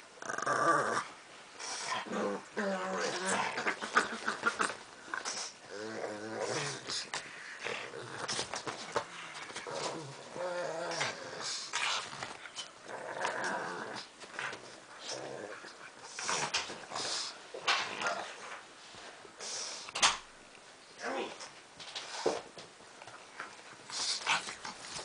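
Small dogs growl and snarl as they play-fight.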